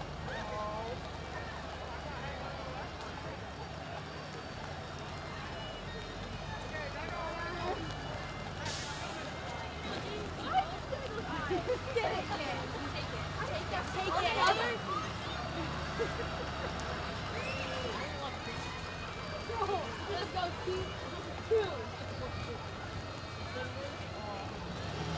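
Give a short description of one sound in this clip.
A fire truck engine rumbles as it rolls slowly past.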